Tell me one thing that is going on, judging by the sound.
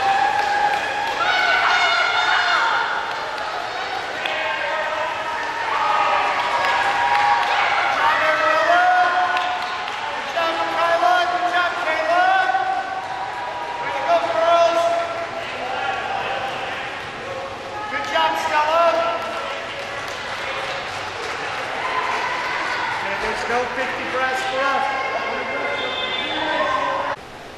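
A crowd of people cheers and shouts in a large echoing hall.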